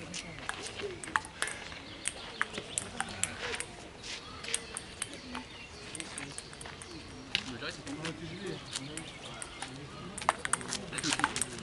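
Table tennis balls click sharply on paddles and tables, outdoors.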